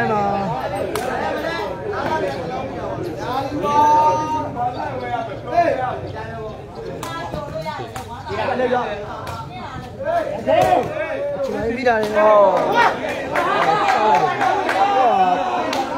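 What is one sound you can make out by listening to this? A crowd of spectators chatters and cheers loudly nearby.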